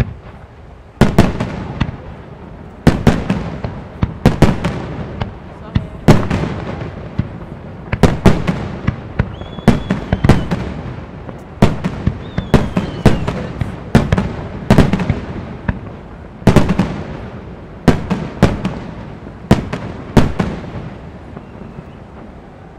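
Fireworks crackle and fizzle after bursting.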